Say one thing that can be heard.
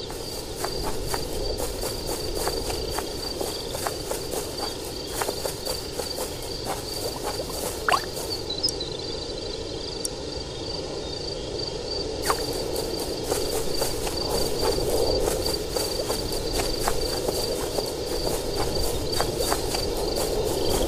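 Footsteps crunch steadily on soft ground.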